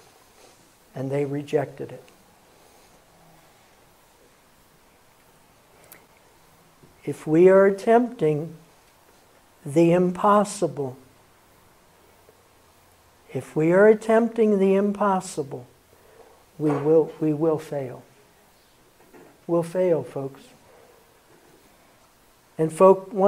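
An elderly man speaks calmly through a microphone in short phrases with pauses.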